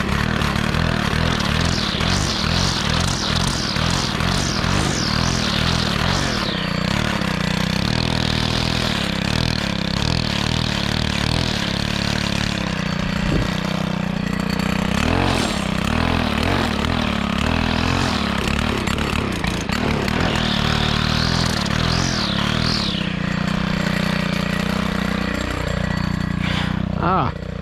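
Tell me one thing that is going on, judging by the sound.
A string trimmer engine runs loudly close by, revving up and down.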